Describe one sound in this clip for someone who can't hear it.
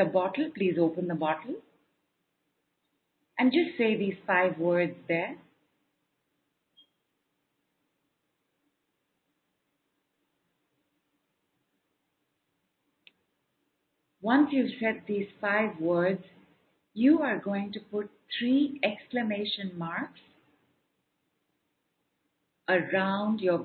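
A woman speaks calmly and clearly into a microphone, with pauses.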